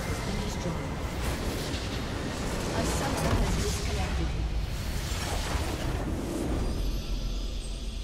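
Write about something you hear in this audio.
Game spell effects blast and crackle loudly.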